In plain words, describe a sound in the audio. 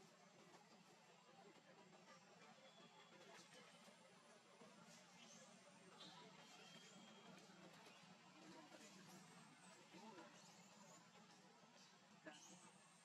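Dry leaves rustle as small monkeys move about on the ground.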